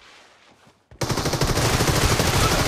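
A rifle fires in a rapid, continuous burst.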